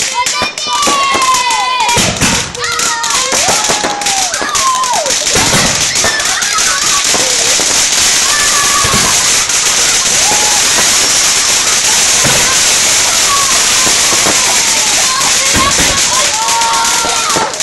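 Firework rockets whistle as they climb.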